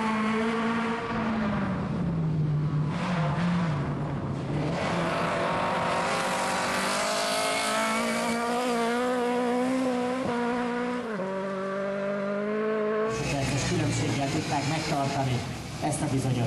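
A rally car engine roars and revs hard, its pitch rising and falling.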